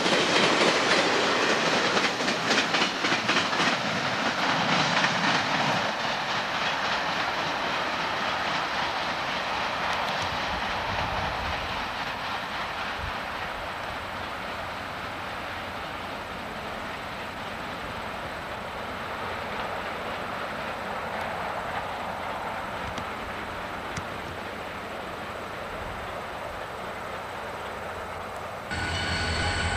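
A freight train rumbles and clatters along the tracks, fading into the distance.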